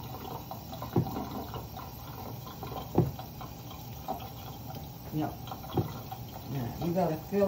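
Hands press and pat soft ground meat into a glass dish.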